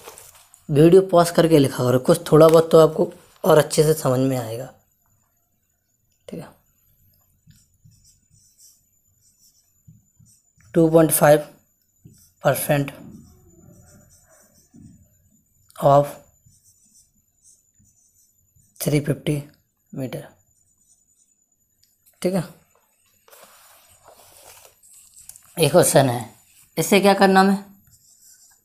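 A young man explains calmly and clearly, close to the microphone.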